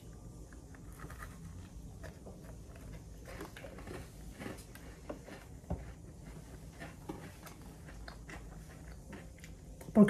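A young woman chews food with her mouth closed.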